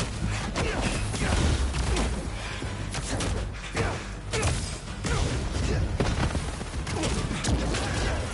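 Heavy punches and kicks land with dull thuds.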